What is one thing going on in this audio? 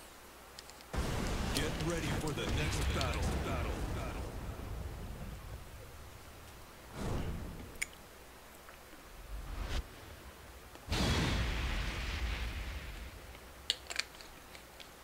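Deep whooshing booms sweep in and slowly fade.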